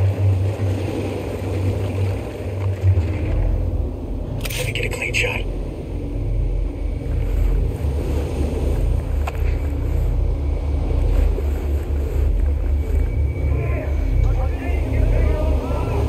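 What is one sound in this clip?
Footsteps scuff slowly over rough ground.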